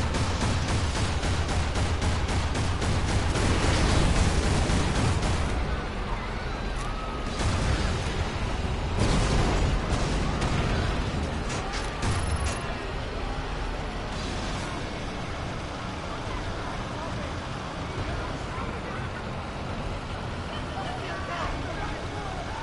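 A heavy tank engine rumbles.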